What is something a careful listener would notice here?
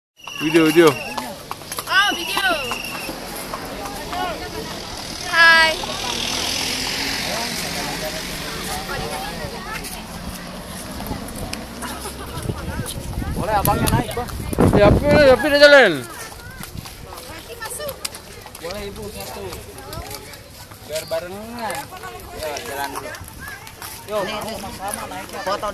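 People chatter nearby outdoors.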